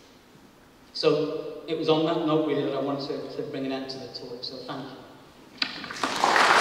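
A man speaks calmly into a microphone in an echoing hall.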